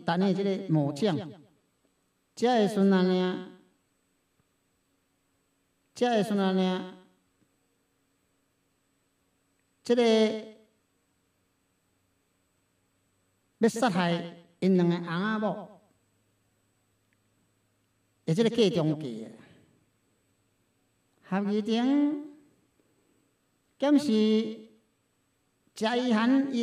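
A middle-aged man speaks slowly into a microphone in short phrases with long pauses.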